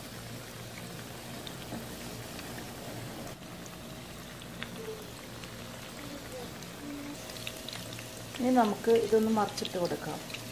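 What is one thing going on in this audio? Oil sizzles and bubbles steadily in a frying pan.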